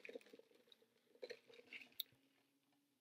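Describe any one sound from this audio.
A drink is slurped through a straw.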